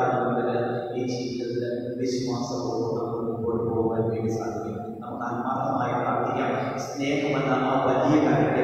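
A man sings slowly through a microphone, echoing in a large hall.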